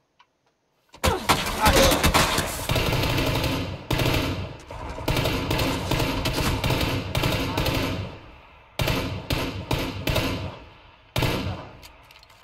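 A rifle fires in loud, rapid bursts with short pauses.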